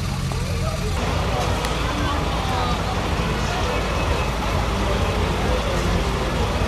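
An engine idles as a vehicle rolls slowly by.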